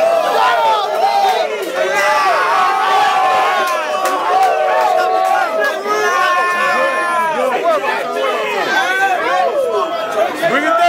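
A young man raps forcefully and rapidly, close by.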